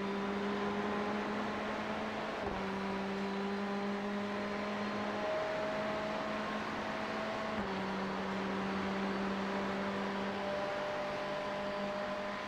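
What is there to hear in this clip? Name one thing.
A racing car engine drones steadily, dropping in pitch at each gear change.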